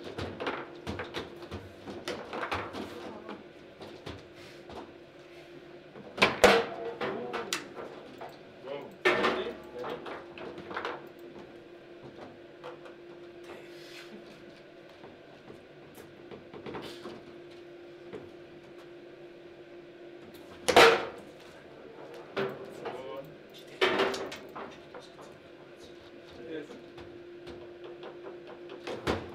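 A foosball ball clacks sharply against plastic players and the table walls.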